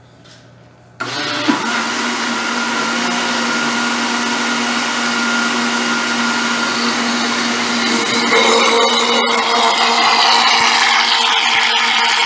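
A blender motor whirs loudly and steadily.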